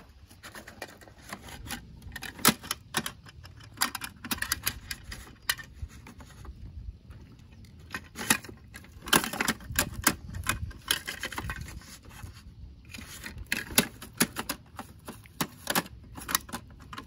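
Plastic parts of a toy truck click and clatter as a hand works its lifting arm.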